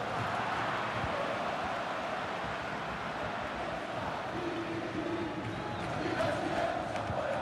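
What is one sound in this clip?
A large crowd cheers and chants steadily in a stadium.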